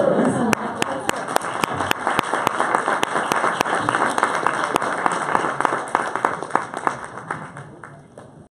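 An audience applauds in a large room, the clapping slowly fading out.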